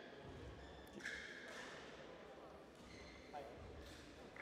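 A racket strikes a shuttlecock with a light pop.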